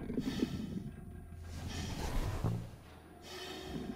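A heavy lever clunks as it is pulled.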